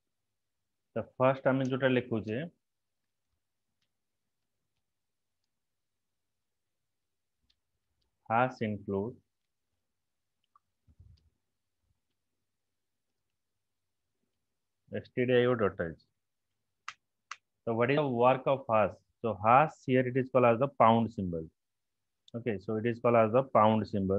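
A man speaks calmly through a computer microphone, in short bursts with pauses.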